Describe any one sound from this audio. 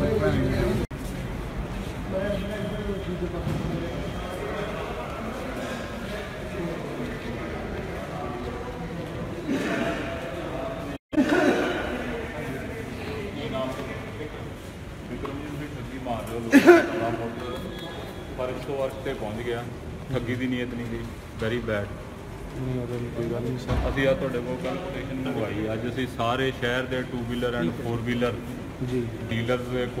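Several men talk over one another in an echoing room.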